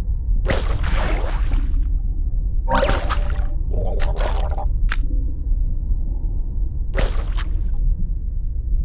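A shark crunches and gulps down prey in short bursts.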